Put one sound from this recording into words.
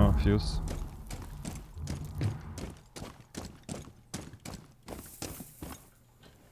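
Footsteps thud on wooden and dirt floors at a quick walking pace.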